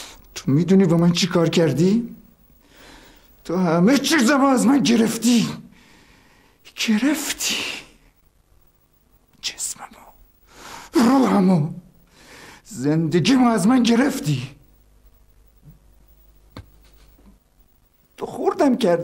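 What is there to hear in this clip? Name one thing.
A man speaks in a low, tense voice close by.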